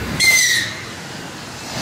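A train horn sounds briefly.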